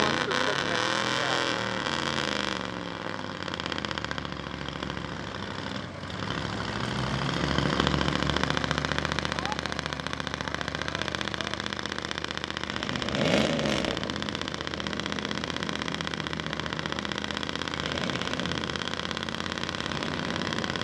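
Tires churn and splash through thick mud.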